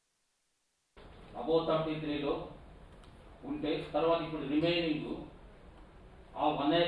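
A man speaks into a microphone, heard through a loudspeaker in a large room.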